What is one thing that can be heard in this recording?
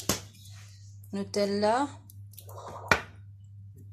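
A glass jar clinks as it is picked up and set down.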